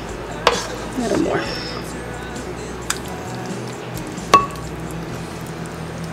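A wooden spoon scrapes and taps against a glass dish.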